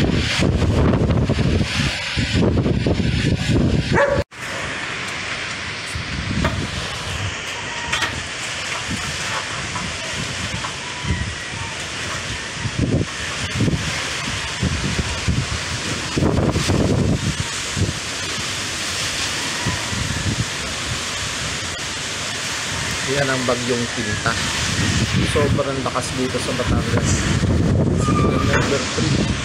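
Strong wind roars and gusts outdoors.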